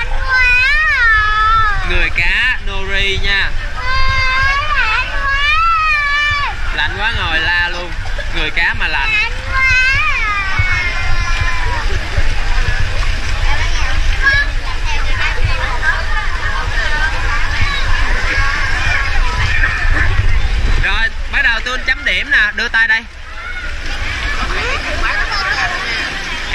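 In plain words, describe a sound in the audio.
Water splashes and laps as swimmers move.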